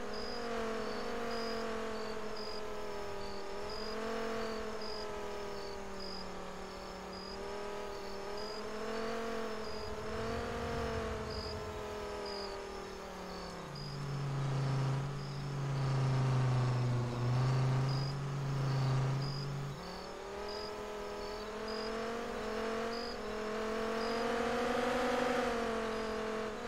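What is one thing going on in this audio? A truck engine hums steadily, rising and falling in pitch as it drives.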